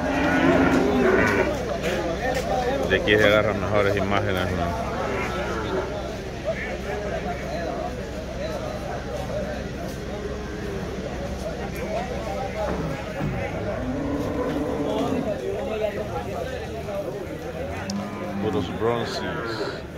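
A crowd of men talk and call out nearby, outdoors.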